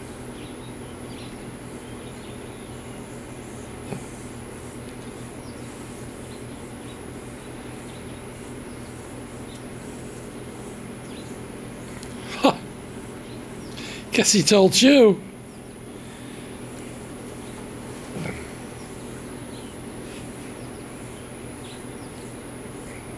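Deer tear and chew grass nearby.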